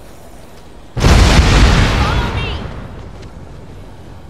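Explosions boom loudly and rumble away.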